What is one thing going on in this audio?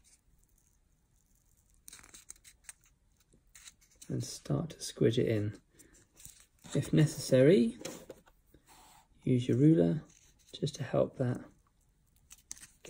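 Small cardboard pieces click and rustle as they are handled.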